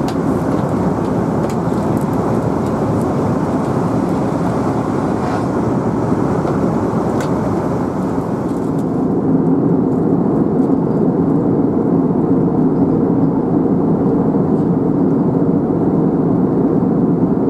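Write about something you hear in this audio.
A jet engine roars steadily inside an airliner cabin, growing louder partway through.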